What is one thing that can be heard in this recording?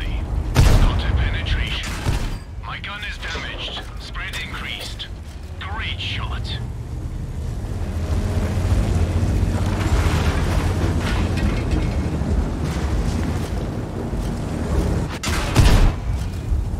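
A tank cannon fires with a loud boom.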